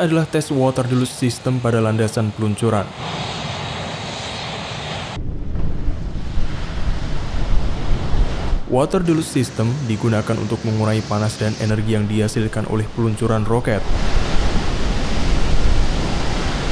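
Water gushes out in a loud, rushing roar.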